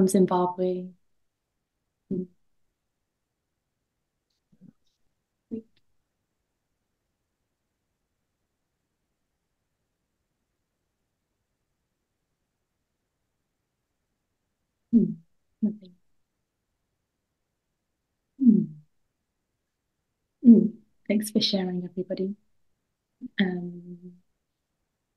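A young woman speaks calmly through an online call, with pauses.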